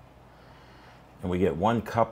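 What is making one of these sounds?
Water pours from a kettle into a glass cup.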